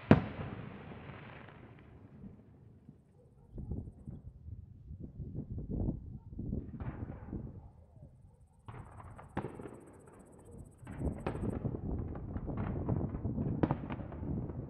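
Fireworks burst and crackle in the distance.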